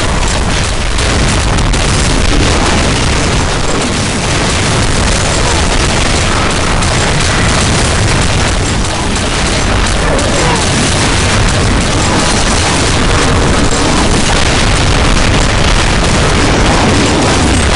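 A game gun fires rapid bursts.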